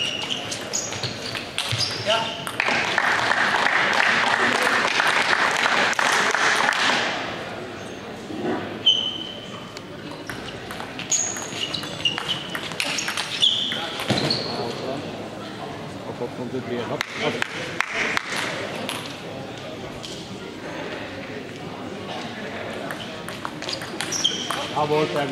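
Sneakers squeak on a sports floor.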